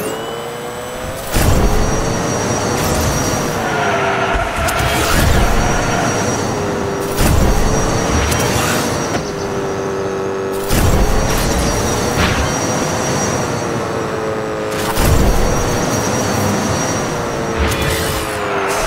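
A small racing car's engine whines, rising and falling in pitch.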